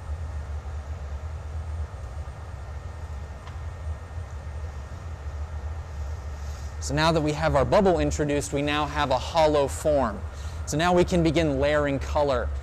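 A glass furnace roars with a steady low rumble.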